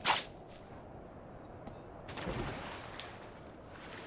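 Water splashes as a figure dives in.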